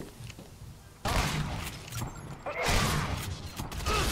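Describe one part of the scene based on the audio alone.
A gun fires in sharp bursts.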